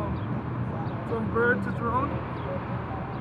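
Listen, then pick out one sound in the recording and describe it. A young man talks casually nearby, outdoors.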